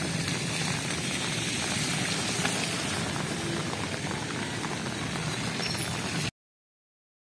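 Rain patters steadily on a flooded road.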